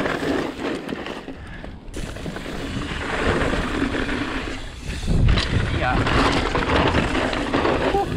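A bicycle frame and chain clatter over bumps.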